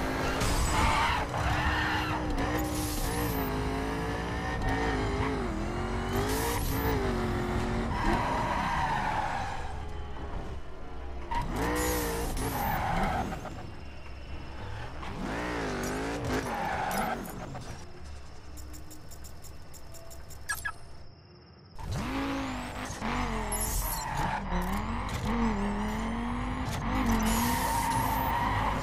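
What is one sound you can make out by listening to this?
A racing car engine roars, revving up and down as it shifts gears.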